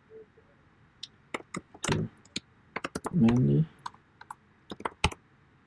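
Keys clack on a keyboard in quick bursts.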